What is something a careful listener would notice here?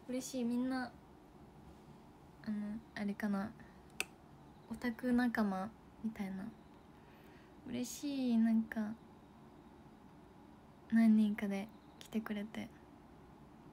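A young woman talks brightly and casually, close to a microphone.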